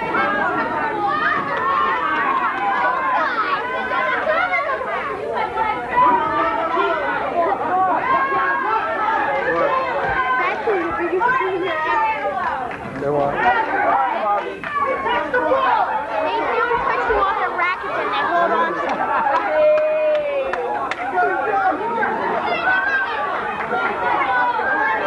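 A crowd of men and women chatter and call out in a large echoing room.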